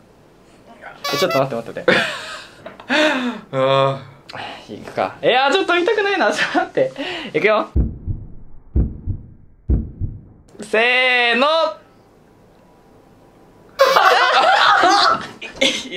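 Young men and women laugh and chatter excitedly close by.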